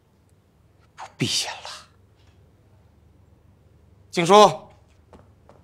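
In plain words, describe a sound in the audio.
A younger man answers in a low voice, close by.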